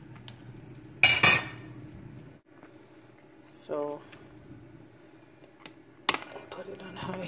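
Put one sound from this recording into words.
A metal pressure cooker lid clanks and clicks shut.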